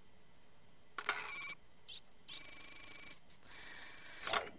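An electronic alarm buzzes in short bursts.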